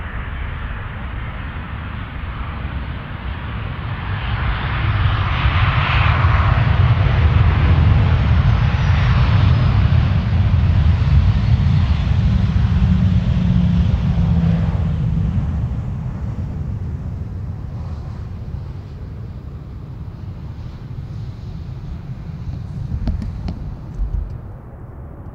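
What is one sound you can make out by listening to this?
A jet airliner roars on approach, swelling and then fading.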